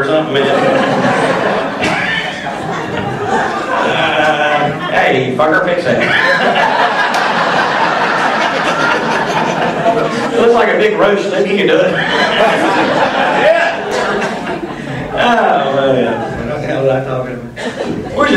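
A man talks animatedly into a microphone over a loudspeaker in an echoing room.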